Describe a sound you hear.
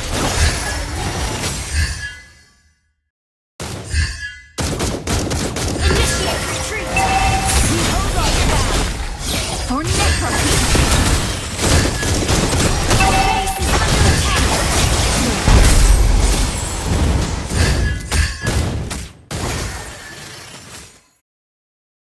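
Game spells blast and weapons clash in a busy fight.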